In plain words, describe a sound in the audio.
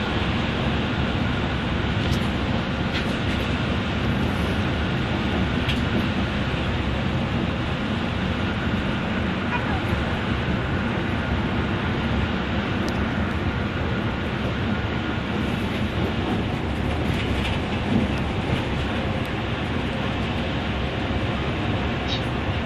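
A bus engine drones steadily while driving at speed.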